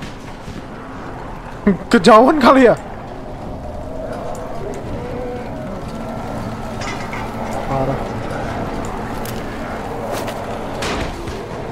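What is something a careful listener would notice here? A fire crackles and roars.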